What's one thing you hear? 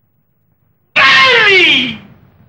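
A middle-aged man calls out loudly and with animation, his voice sliding down in pitch.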